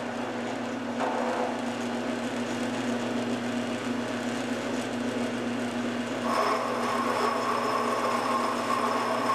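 A milling cutter grinds into metal.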